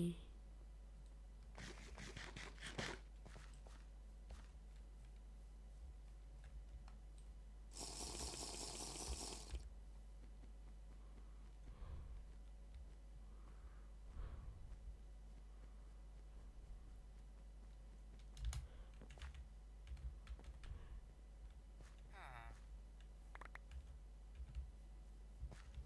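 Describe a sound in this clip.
Footsteps tread softly on grass and stone.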